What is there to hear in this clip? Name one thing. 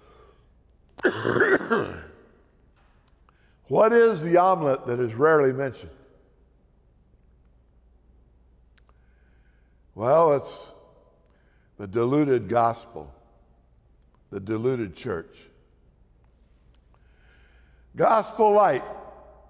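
An elderly man speaks with animation through a microphone, in short bursts with pauses.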